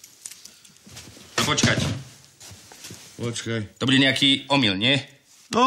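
A second man answers calmly close by.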